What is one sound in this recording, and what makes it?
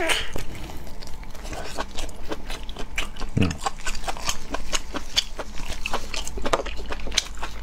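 Gloved hands tear and squelch soft sticky meat.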